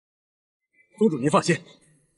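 A young man speaks firmly.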